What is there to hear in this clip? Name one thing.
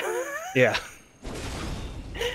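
A gunshot bangs once.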